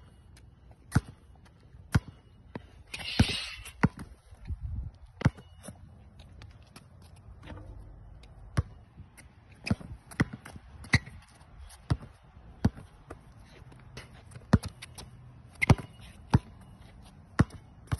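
A basketball bounces hard on an outdoor court.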